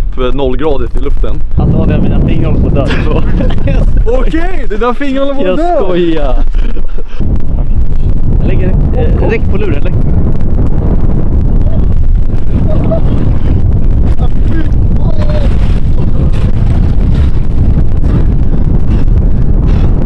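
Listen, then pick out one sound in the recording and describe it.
Strong wind rumbles across an open microphone.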